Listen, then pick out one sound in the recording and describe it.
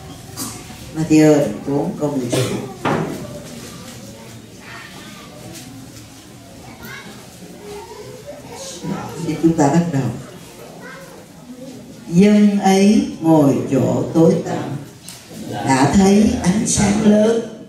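An elderly woman reads aloud slowly through a microphone, in a reverberant room.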